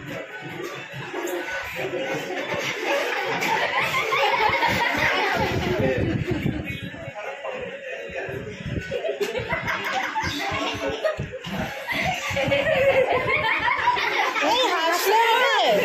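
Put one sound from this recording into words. Young people laugh and cheer close by.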